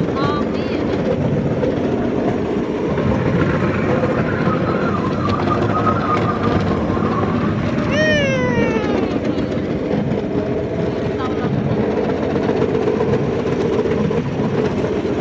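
A small rail cart rattles and rumbles steadily along a track.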